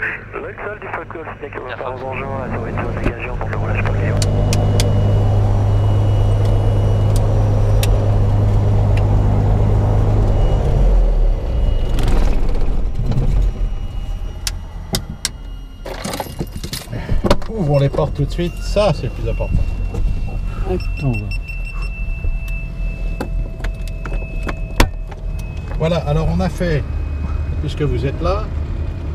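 A middle-aged man talks calmly over a headset intercom.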